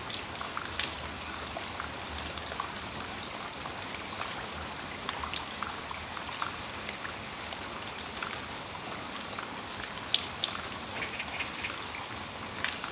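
Raindrops patter and tap on a metal awning.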